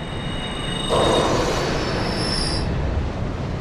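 A soft chime sounds as an item is used.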